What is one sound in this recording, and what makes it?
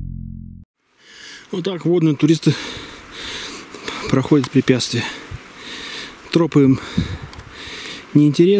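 Leafy branches rustle and swish as a person pushes through dense bushes.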